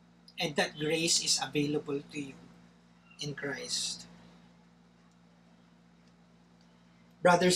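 A man speaks calmly into a nearby microphone, with pauses.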